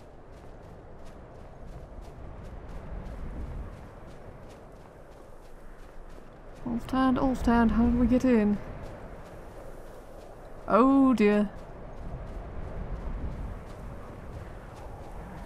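Wind blows over open ground.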